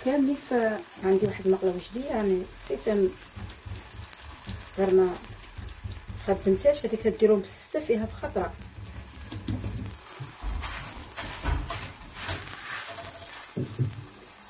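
A flatbread sizzles softly in a hot pan.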